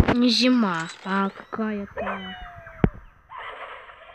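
A cartoon bird squawks as it is flung through the air.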